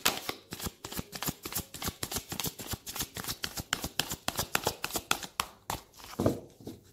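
Fingers tap and click rapidly on a hard object close up.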